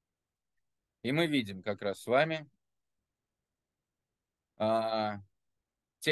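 A middle-aged man speaks calmly over an online call, in short phrases with pauses.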